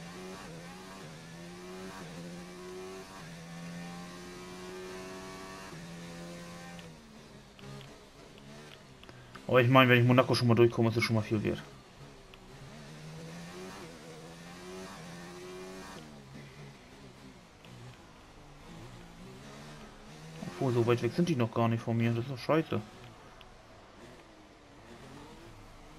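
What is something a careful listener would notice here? A racing car engine whines loudly, its pitch rising and falling as it speeds up and slows down.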